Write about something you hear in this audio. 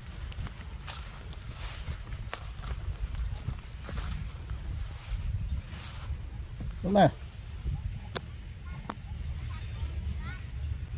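A monkey's feet rustle softly through grass.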